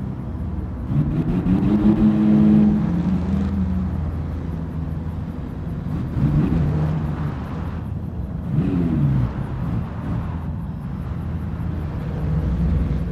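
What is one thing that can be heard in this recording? Tyres skid and scrape over loose gravel.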